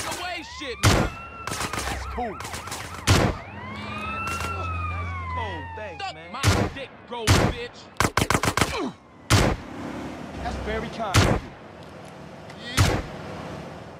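A shotgun fires loud, booming shots again and again.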